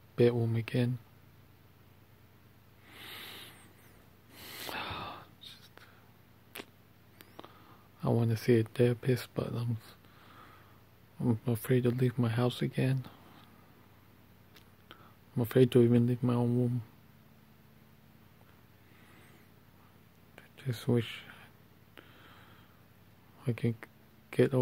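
A man talks quietly and close up, in short bursts.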